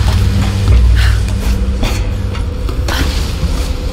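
Hands and feet clank on a metal ladder.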